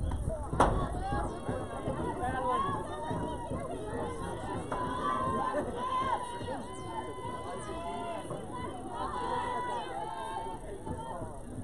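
Young women shout and cheer from across an open field.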